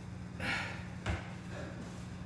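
Feet thud onto a metal exercise frame.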